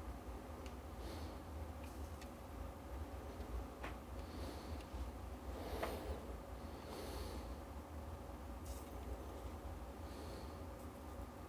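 A soldering iron sizzles softly against a metal joint.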